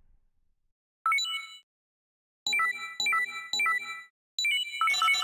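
Short electronic beeps chime.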